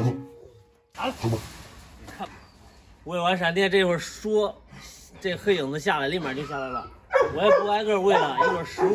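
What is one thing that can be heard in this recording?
A young man talks outdoors with animation.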